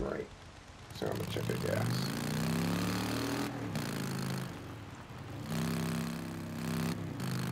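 A motorcycle engine starts and roars as the motorcycle rides away.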